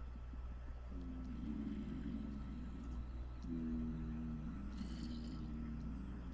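A zombie groans low and close by.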